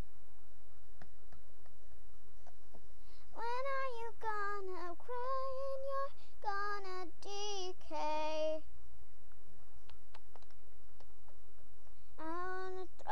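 Small plastic toys knock and tap against a hard surface.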